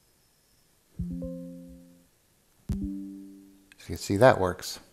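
A computer warning chime sounds twice.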